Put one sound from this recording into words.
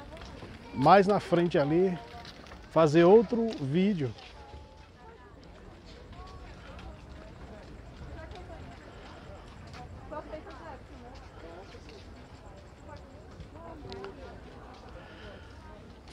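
A crowd murmurs steadily in the background outdoors.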